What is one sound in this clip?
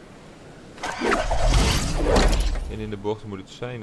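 A glider snaps open with a loud whoosh.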